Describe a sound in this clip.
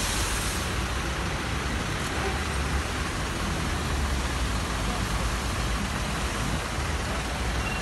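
Water sprays from a fire hose outdoors.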